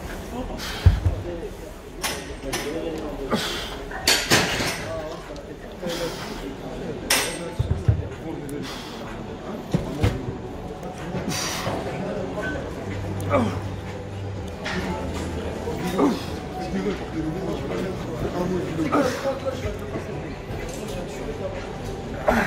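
A man grunts and strains with effort close by.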